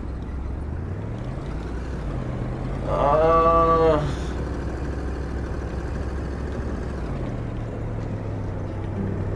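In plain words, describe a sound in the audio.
A car engine starts and hums steadily.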